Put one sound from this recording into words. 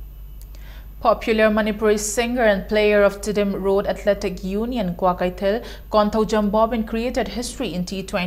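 A young woman reads out calmly into a studio microphone.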